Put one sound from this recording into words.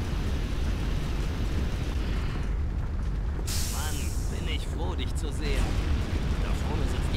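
Water sprays hard from a hose with a loud hiss.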